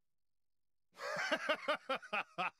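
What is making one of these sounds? A man chuckles.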